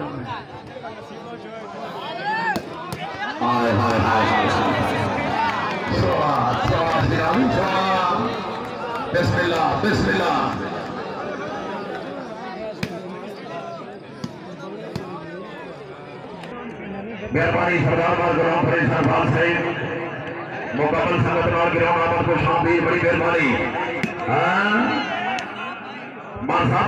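A large crowd shouts and cheers outdoors, rising and falling in bursts.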